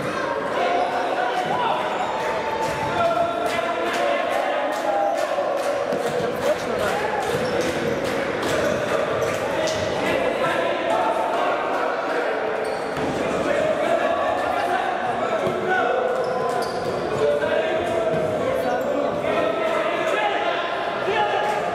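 A futsal ball is kicked with sharp thuds in an echoing indoor hall.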